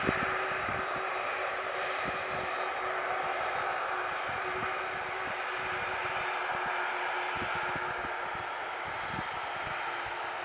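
Jet engines roar and whine steadily as a large airliner taxis nearby.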